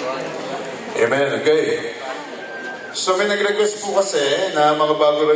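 A man speaks into a microphone, heard through loudspeakers in a large room.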